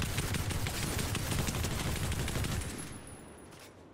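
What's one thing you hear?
A rifle fires quick shots.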